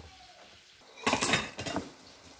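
A cup clinks on a plate.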